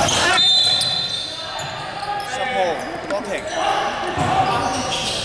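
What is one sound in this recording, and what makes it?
Young men shout and call out in a large echoing hall.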